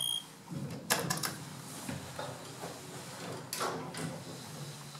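Elevator doors slide shut with a thud.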